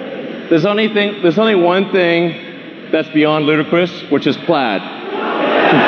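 A man speaks with animation through a loudspeaker in a large hall.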